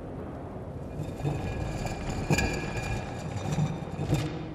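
A heavy stone slab grinds as it is pushed open.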